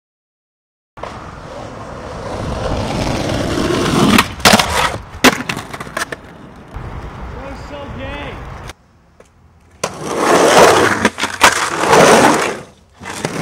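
Skateboard wheels rumble loudly over rough concrete.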